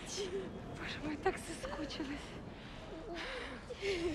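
A woman speaks tearfully up close.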